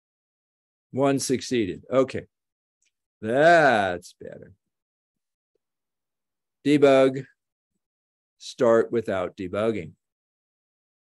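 An elderly man speaks calmly into a microphone, heard as if over an online call.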